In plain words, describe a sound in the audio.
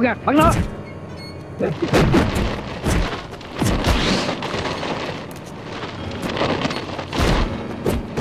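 Men shout and grunt as they fight.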